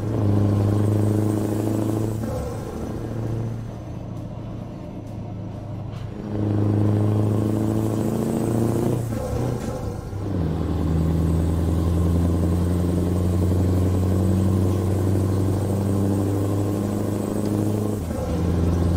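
A truck's diesel engine drones steadily, its pitch rising and falling as gears change.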